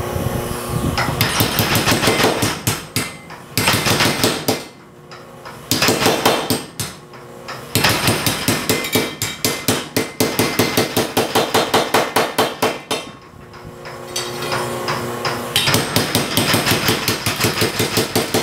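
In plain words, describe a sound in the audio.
A power hammer pounds metal with rapid, rhythmic blows that stop and start.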